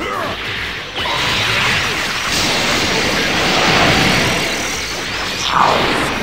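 An energy blast roars with a loud rushing whoosh.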